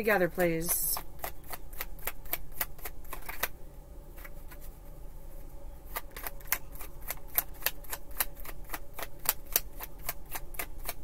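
Cards are shuffled with quick riffling clicks.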